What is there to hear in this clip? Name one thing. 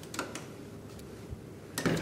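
A hand pulls open a metal door handle with a clunk.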